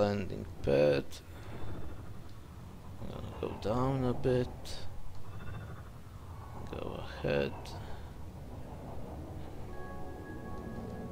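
A spaceship's engines hum low and steady.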